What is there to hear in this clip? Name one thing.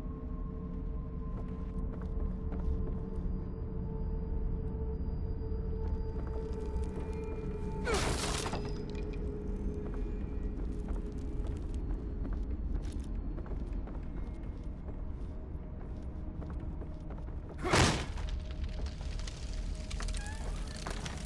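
Footsteps creak slowly across wooden floorboards.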